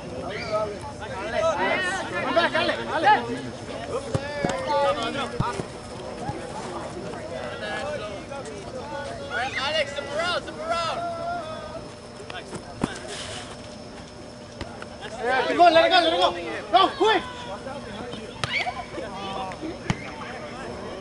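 Men shout across a field outdoors.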